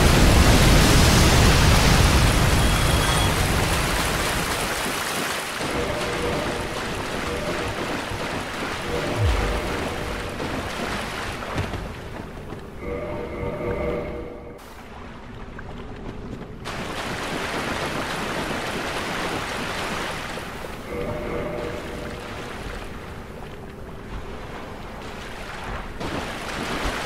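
A game character wades and splashes through water.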